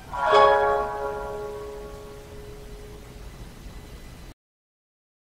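A plucked string instrument sounds a chord that rings and slowly fades.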